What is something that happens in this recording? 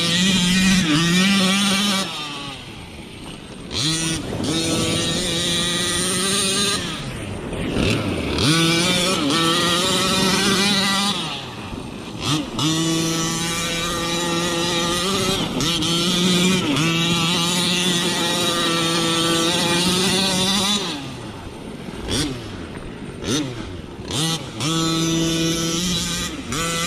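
A small electric motor whines at high pitch, rising and falling as a toy car speeds up and slows down.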